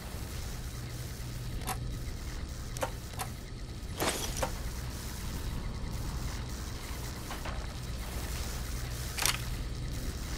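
Small metal objects clink and clatter as they are picked up.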